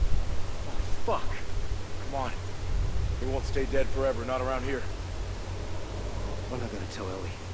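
A second man speaks calmly in a deep voice.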